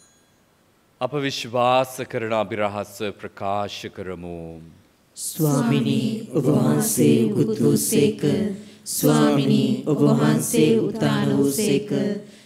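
A man sings a prayer slowly through a microphone in a reverberant hall.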